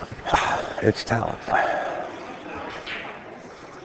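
A cue stick strikes a pool ball with a sharp click.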